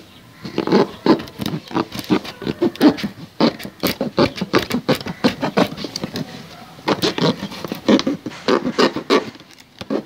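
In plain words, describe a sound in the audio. A plastic jug rustles and knocks as a hand handles it.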